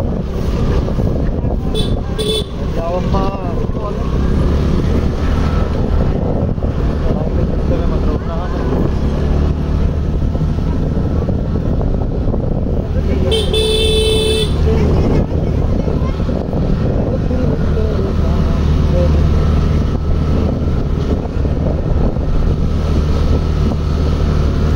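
A scooter engine hums as the scooter rides along a road.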